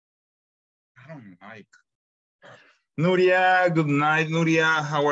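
A man speaks through an online call, calmly at first and then loudly and close to the microphone.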